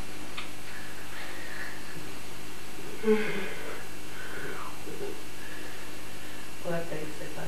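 A man groans and yawns sleepily close by.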